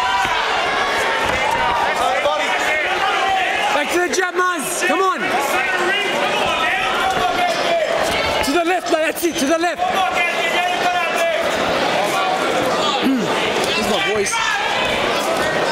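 A crowd of men shouts and cheers loudly throughout.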